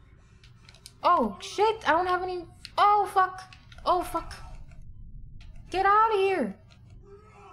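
A young woman talks animatedly and expressively into a microphone, close by.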